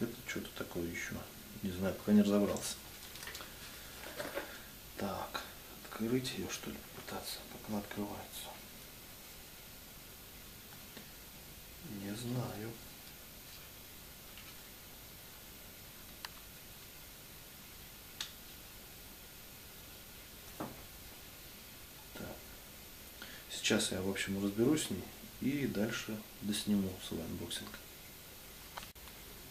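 Small plastic parts click and rustle as they are handled up close.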